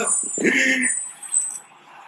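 A man laughs loudly close to a phone microphone.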